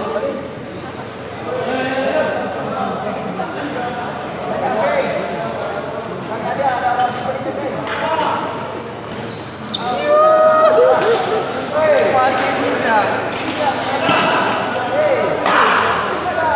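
A badminton racket strikes a shuttlecock with sharp pops.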